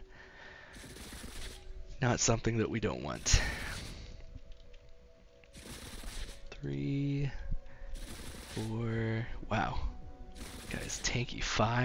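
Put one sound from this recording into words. Laser blasts zap and crackle during a fight.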